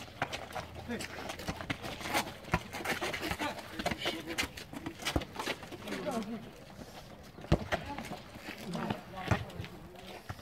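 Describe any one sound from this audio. A football is kicked with sharp thuds outdoors.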